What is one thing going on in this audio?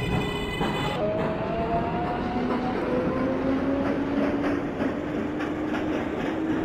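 An electric train motor whines, slowly rising in pitch as the train speeds up.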